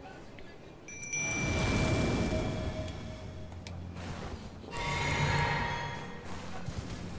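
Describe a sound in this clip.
A magical shimmer swells and rings brightly.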